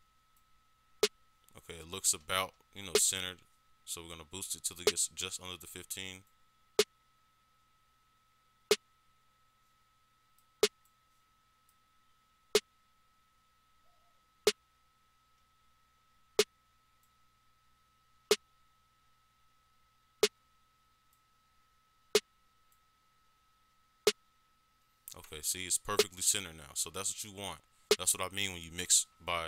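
Electronic music plays, with a sharp beat at a slow, steady pace.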